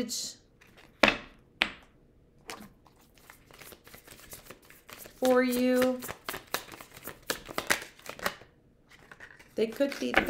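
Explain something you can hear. Paper rustles and crinkles as it is unwrapped.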